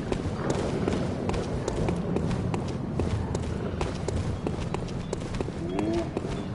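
Quick footsteps run over stone cobbles.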